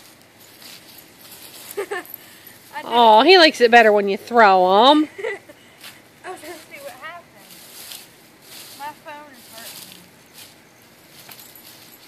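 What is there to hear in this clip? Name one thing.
Dry leaves rustle as a woman tosses them into the air.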